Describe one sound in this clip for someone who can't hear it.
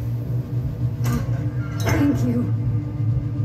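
A metal cage door clanks and creaks open.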